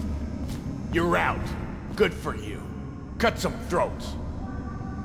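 A man speaks gruffly from close by.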